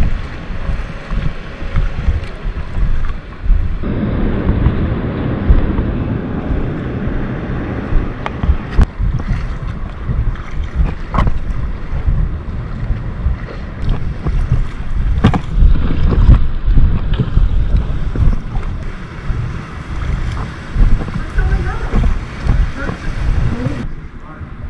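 A paddle splashes and dips into water.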